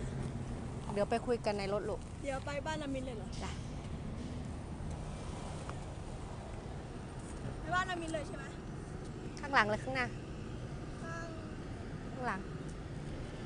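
A young girl talks calmly up close, outdoors.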